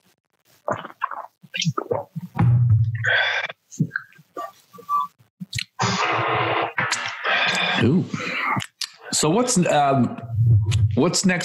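Young men talk with animation over an online call.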